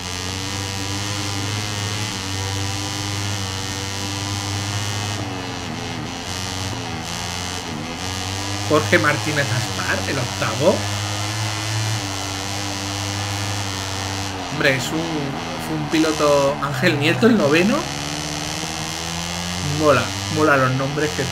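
A motorcycle engine revs and whines steadily, shifting pitch as it speeds up and slows down.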